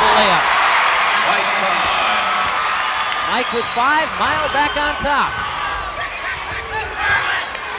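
A large crowd cheers and murmurs in an echoing gym.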